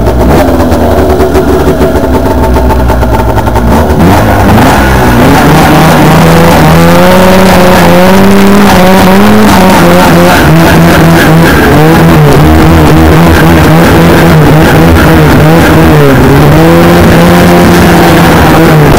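A snowmobile engine roars loudly up close, its pitch rising and falling with the throttle.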